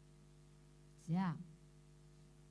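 A middle-aged woman makes a short vocal sound through a microphone.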